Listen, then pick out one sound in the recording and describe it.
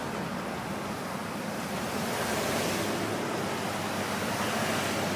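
Car engines hum and tyres roll steadily along a busy road.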